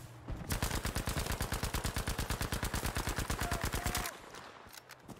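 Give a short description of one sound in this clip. A rifle fires in a rapid automatic burst.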